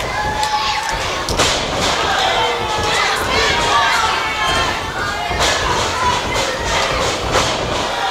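Bodies slam onto a wrestling ring mat with loud thuds.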